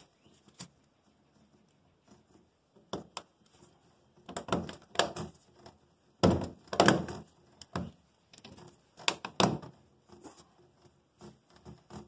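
A corrugated plastic hose rustles and knocks against a metal panel.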